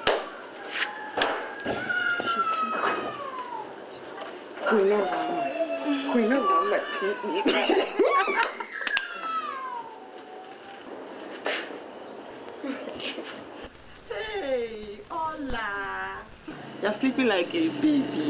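Young women laugh loudly.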